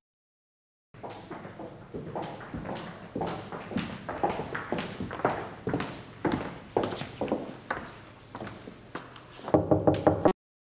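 High heels click on a hard floor as people walk.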